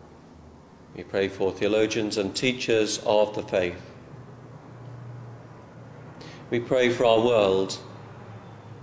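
An elderly man speaks calmly and slowly, echoing in a large hall.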